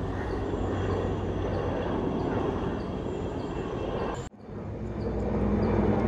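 A helicopter drones far off overhead.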